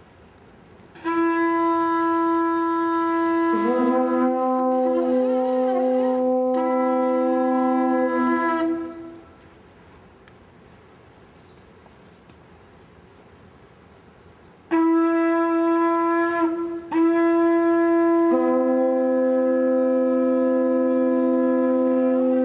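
A horn sounds in long, loud, steady blasts.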